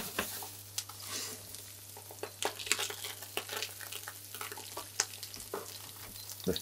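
A spatula scrapes and clinks against a pan.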